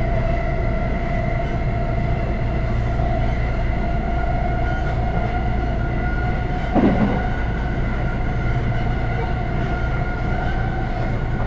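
A train's motor whines with steady tones.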